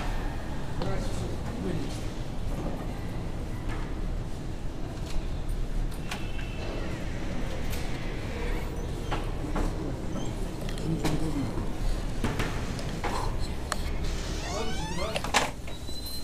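Men talk and argue nearby.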